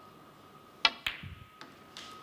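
A snooker ball knocks against another ball.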